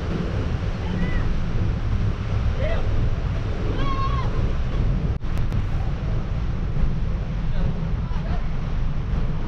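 Gulls cry overhead.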